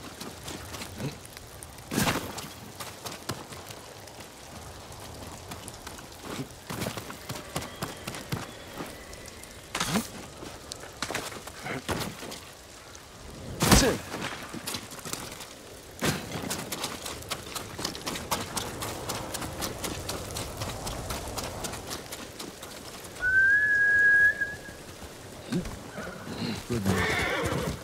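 Footsteps rustle through grass and over rock.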